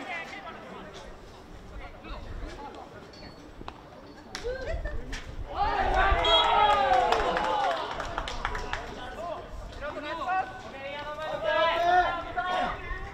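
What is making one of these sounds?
Field hockey sticks clack sharply against a hard ball outdoors.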